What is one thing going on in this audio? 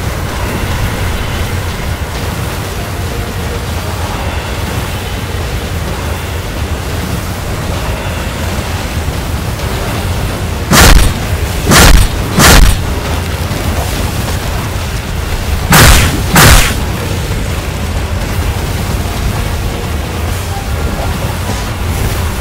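Water splashes underfoot.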